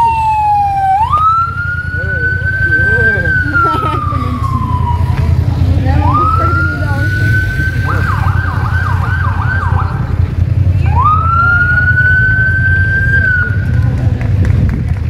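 A police siren wails and rises and falls in pitch nearby.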